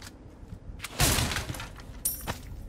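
A wooden crate is smashed open with a loud crack.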